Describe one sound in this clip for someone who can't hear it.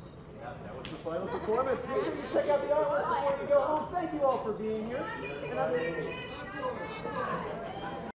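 A man speaks into a microphone over loudspeakers in a large hall.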